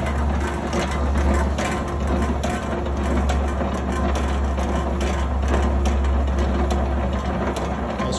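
A meat slicer's motor hums steadily.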